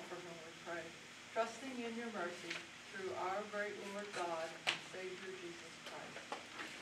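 An elderly woman reads aloud calmly, close by.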